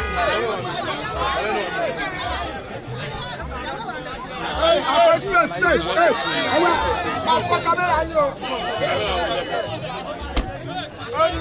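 A crowd of men and women talk and shout excitedly close by, outdoors.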